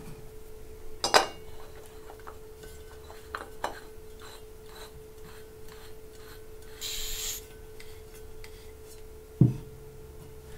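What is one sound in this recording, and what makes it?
A metal valve clicks and clacks as it is screwed onto a gas can.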